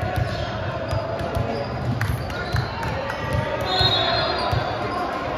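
Players and onlookers chatter in the background.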